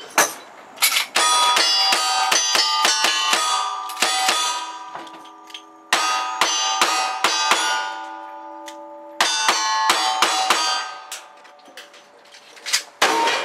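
Steel targets ring out after being hit.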